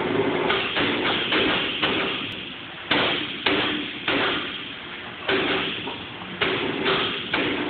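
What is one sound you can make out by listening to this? A heavy machine roars loudly with repeated sudden clanks that ring and fade.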